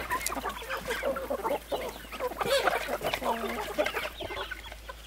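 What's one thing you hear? Ducklings peep busily up close.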